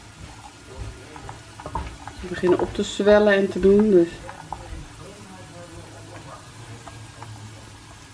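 Tongs scrape and rattle nuts around in a frying pan.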